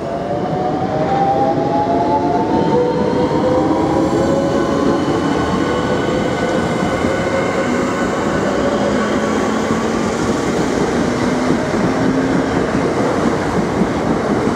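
A train pulls out, its electric motors whining and slowly rising in pitch.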